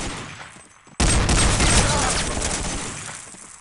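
Gunfire cracks out in loud bursts.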